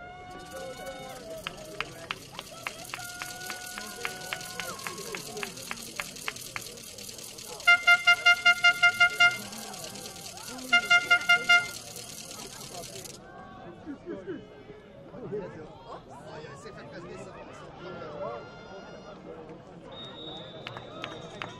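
A crowd of spectators chatters and calls out at a distance, outdoors.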